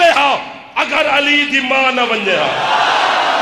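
A man speaks loudly and with passion into a microphone, over a loudspeaker.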